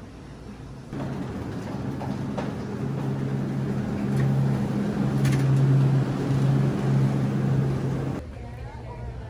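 A refrigeration fan hums loudly and steadily.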